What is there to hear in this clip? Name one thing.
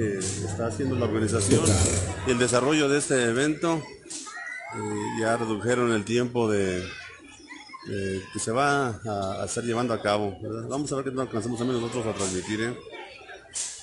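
A man sings through a loudspeaker.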